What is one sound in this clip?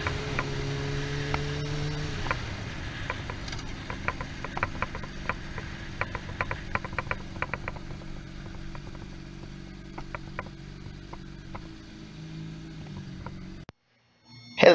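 A motorcycle engine hums steadily as it rides along, then eases down.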